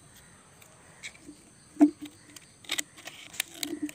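Scissors snip through thin plastic.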